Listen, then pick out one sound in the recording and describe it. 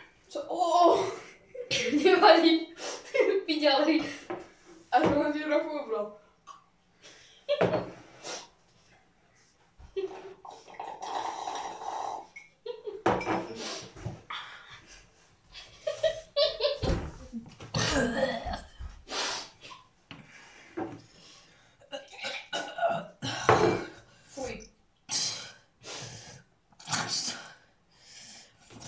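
Two boys talk and laugh close by.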